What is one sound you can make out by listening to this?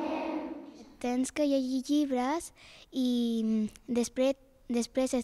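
A young girl speaks close into a microphone.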